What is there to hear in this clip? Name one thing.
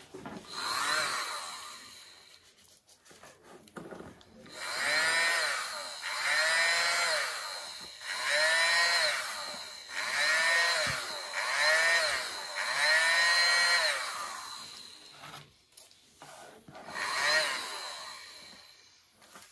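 A small handheld electric blower whirs in short bursts.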